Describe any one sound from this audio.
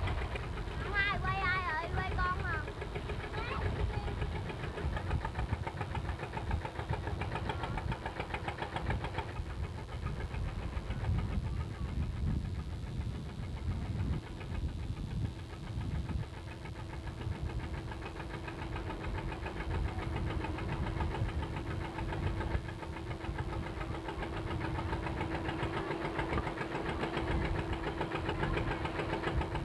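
Water rushes past a moving boat.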